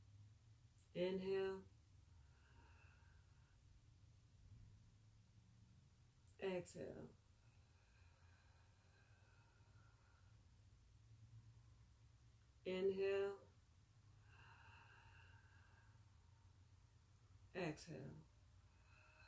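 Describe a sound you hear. A young woman speaks calmly and softly close by.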